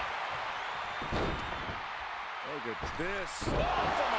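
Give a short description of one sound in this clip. A body slams heavily onto a wrestling ring mat with a thud.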